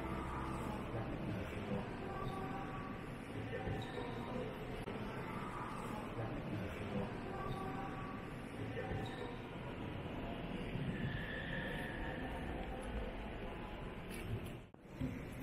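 Visitors murmur and talk quietly in a large echoing hall.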